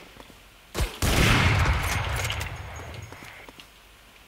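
A sniper rifle fires a single loud shot that echoes and fades.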